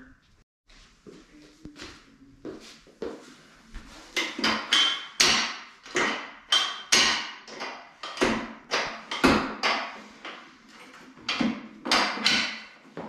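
Metal parts of a weight bench clank and click as they are adjusted.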